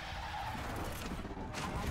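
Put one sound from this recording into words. A fiery explosion bursts with a loud rumbling roar.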